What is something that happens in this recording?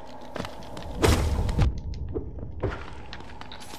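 A fiery blast bursts with a sharp crackle.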